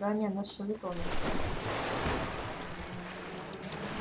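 Water splashes and rushes.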